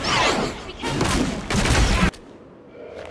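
Loud crashing blasts and roaring bursts of a fight.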